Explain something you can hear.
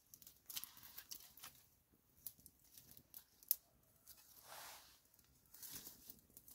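Dry twigs rustle and snap as a hand shifts them.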